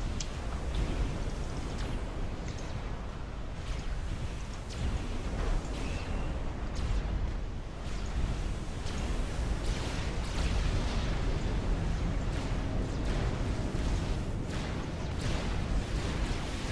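Ship engines rumble low and steadily.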